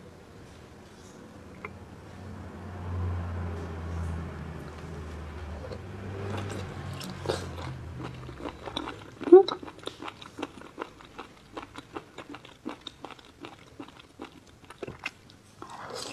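Gloved fingers squish and crinkle a soft wet food.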